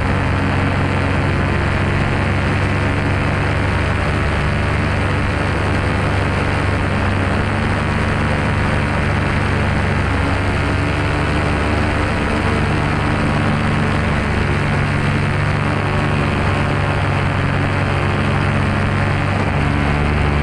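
A paramotor engine drones loudly and steadily close by.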